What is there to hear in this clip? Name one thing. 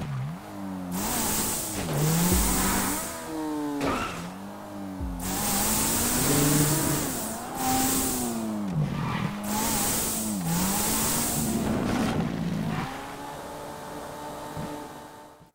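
A buggy engine revs up and down as it races.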